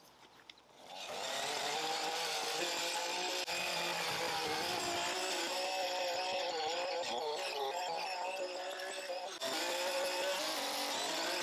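An electric string trimmer whines steadily as it edges grass.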